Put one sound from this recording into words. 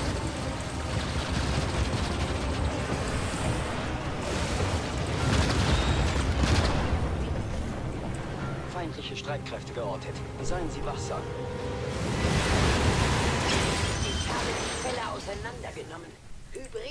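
Game gunfire and explosions rumble and crackle in a dense battle.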